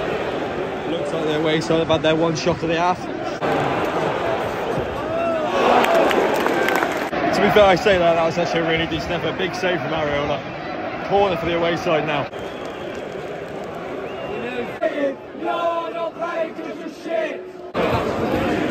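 A crowd of fans sings and chants together.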